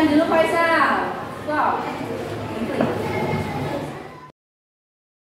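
Children talk in a room with some echo.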